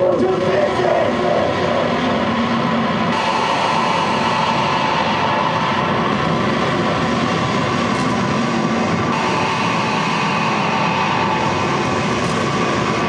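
Loud live band music plays.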